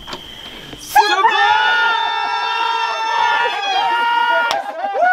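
An elderly man screams loudly and theatrically close by.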